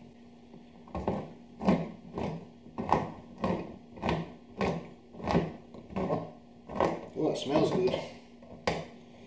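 A hand can opener clicks and grinds as it is cranked around a can.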